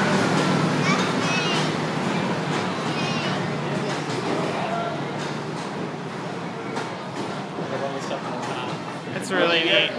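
Train carriages rattle and clatter along the tracks.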